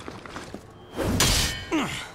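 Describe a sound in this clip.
Metal clangs and grinds loudly.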